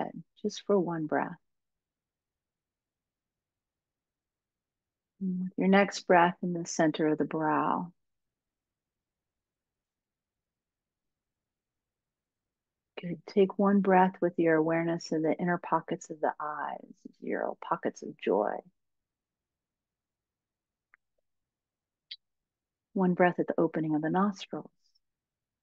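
A woman speaks calmly through an online call, with long pauses.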